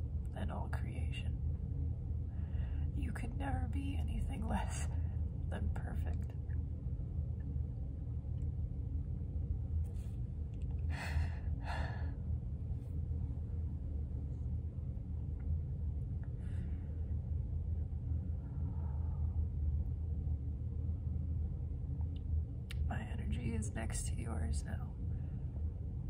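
A young woman speaks softly and with emotion, near tears, close to the microphone.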